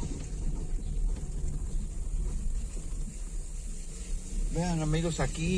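A car engine rumbles low and steadily from inside the car.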